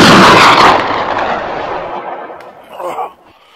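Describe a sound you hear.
A loud blast booms and slowly dies away.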